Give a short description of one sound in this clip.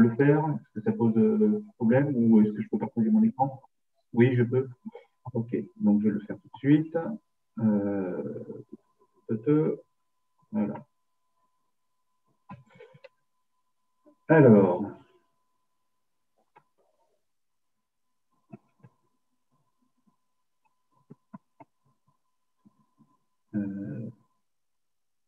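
A middle-aged man speaks calmly over an online call, pausing now and then.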